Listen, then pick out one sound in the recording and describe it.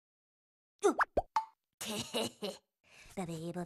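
A cartoon character talks in a high, playful voice.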